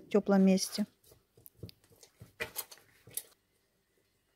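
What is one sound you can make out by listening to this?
Hands squish and knead soft dough.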